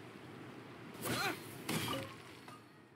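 A burst of sparkling magical sound swells.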